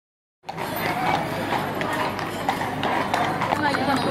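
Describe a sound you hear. Cart wheels rattle over cobblestones.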